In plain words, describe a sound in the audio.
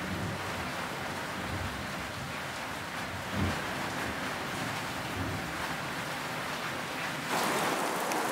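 Bedding rustles as a woman shifts in bed.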